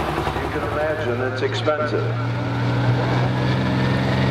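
A second tractor engine rumbles loudly close by.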